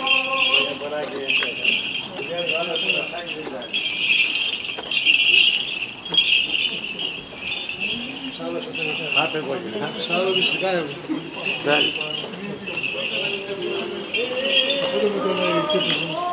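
Men chant together in deep, steady voices close by.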